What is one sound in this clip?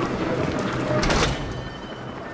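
A heavy metal door bangs open.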